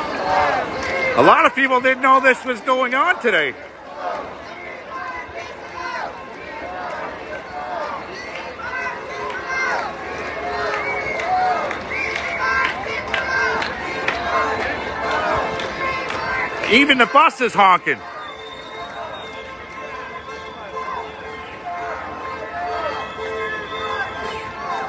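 A large crowd of people chants and shouts outdoors.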